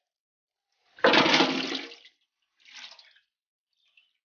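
Water and fish splash into a metal basin.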